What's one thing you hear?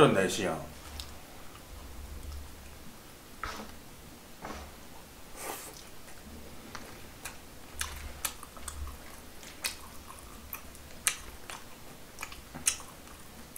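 Chopsticks click against dishes.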